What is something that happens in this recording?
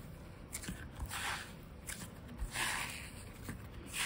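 Slime crackles and snaps as hands stretch it.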